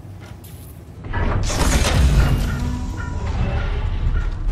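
Heavy boots thud on a metal floor.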